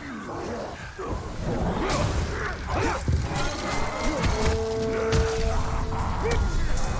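Metal blades clash and strike repeatedly in a fight.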